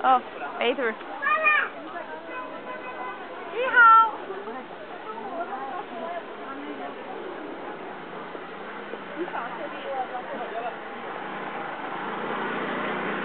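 Many people chatter nearby outdoors.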